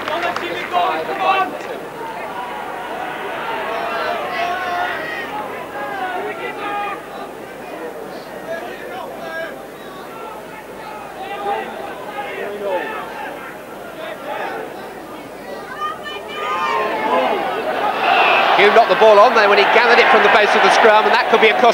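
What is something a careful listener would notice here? A large crowd murmurs and cheers in a stadium, swelling to a loud roar near the end.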